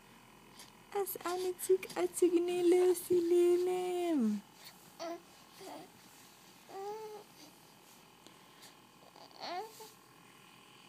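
A baby coos close by in short, high sounds.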